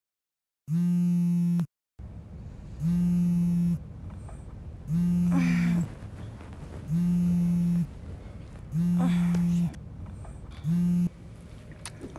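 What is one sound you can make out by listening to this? A phone rings in short repeated bursts.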